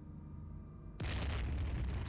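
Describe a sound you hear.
A heavy gun fires with a loud, rushing blast.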